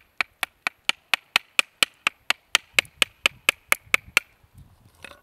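A hammer taps rapidly and steadily on a wooden peg.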